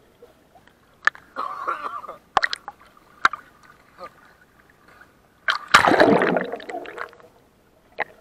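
Water splashes and churns as a man moves in the sea.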